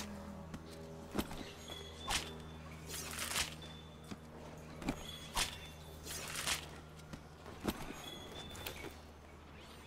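A blade slices into a carcass again and again.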